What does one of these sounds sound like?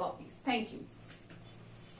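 A young woman speaks calmly and close by.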